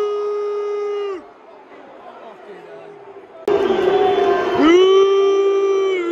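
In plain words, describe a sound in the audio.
A large crowd chants loudly in an open stadium.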